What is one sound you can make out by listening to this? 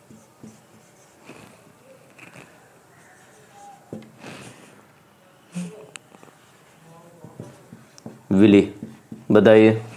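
A marker squeaks softly on a whiteboard.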